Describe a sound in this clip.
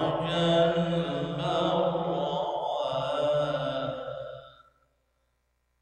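A man chants in a long, melodic voice through a microphone, with a slight echo, then falls silent.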